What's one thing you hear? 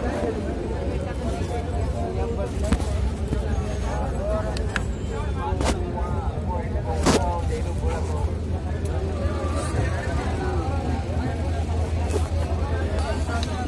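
Clothing rustles and rubs close by.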